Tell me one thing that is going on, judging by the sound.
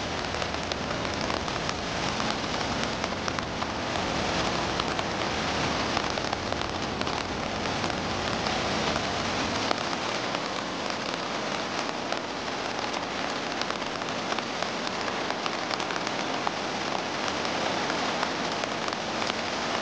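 Churning river water rushes and splashes loudly.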